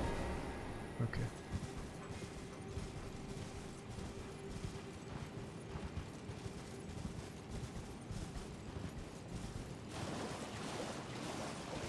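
A horse's hooves thud steadily as it gallops over the ground.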